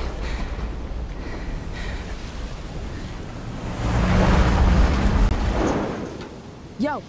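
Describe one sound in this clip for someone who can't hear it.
A deep rumble of collapsing debris swells and fades.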